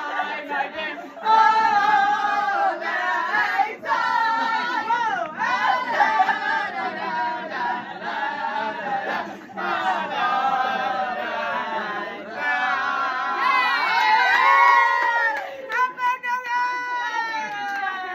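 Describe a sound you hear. A group of young people sing loudly together close by.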